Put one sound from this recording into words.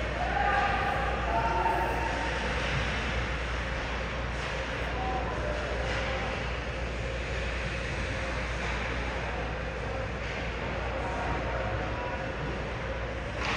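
Skates scrape and glide across ice.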